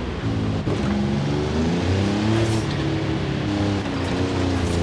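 Tyres skid and crunch over loose gravel.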